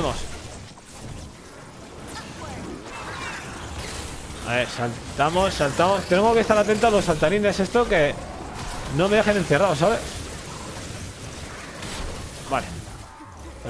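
A sword swishes and strikes repeatedly.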